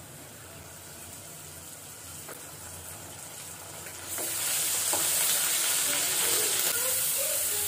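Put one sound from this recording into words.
Onions sizzle in hot oil in a pan, growing louder.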